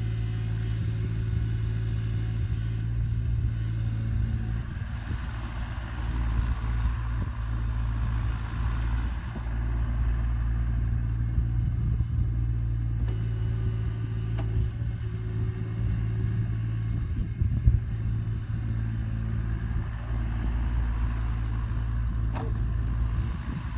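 A small excavator's diesel engine hums steadily nearby.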